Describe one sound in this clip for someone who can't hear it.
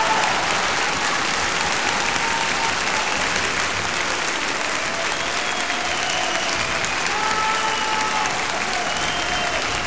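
A crowd of men and women chatter close by.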